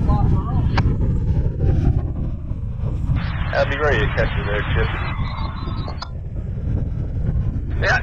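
Choppy water laps against the shore.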